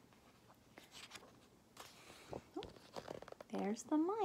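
Book pages rustle as a book is opened.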